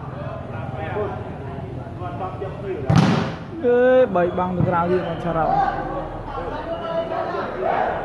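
Young men shout to one another during play.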